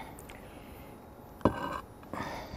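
A glass lid clinks down onto a clay jar.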